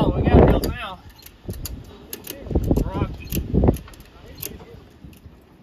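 Metal chains clink and rattle against a trailer.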